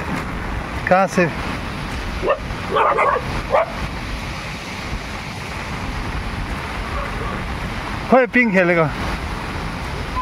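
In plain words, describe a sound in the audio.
Bare feet splash along a flooded path.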